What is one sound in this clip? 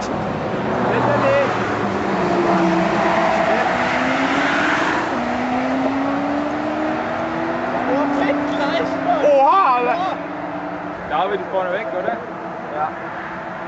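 Heavy traffic roars steadily past on a motorway.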